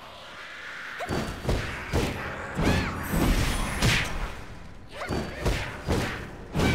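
Creatures grunt and shriek as they are hit.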